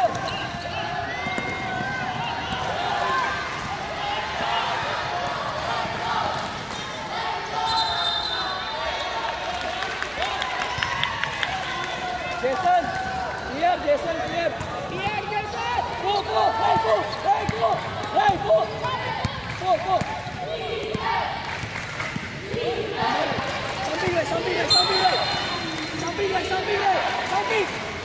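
Young players and spectators shout and chatter in a large echoing hall.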